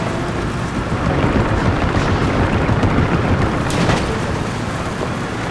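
Wooden bridge planks rattle under tyres.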